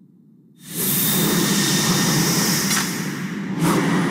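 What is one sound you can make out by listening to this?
Flames roar in a sudden burst.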